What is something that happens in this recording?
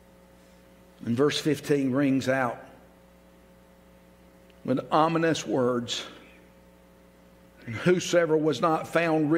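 An elderly man reads aloud slowly and solemnly into a microphone, in bursts with pauses.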